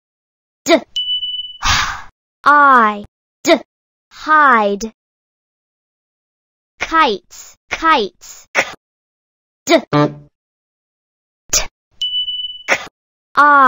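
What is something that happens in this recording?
A short electronic chime rings as a letter tile drops into place.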